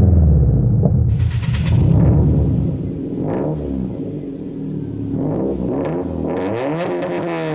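A car engine revs in short, sharp bursts with a raspy exhaust.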